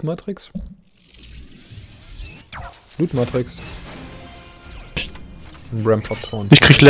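A bright magical chime and whoosh ring out as a crystal bursts open.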